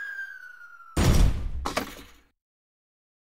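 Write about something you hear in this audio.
A refrigerator lands with a heavy thud.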